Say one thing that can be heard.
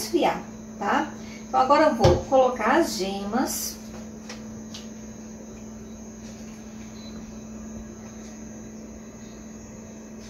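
A whisk clinks against a bowl.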